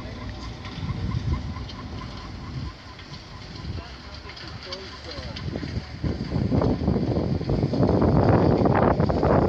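Wind blows outdoors, buffeting the microphone.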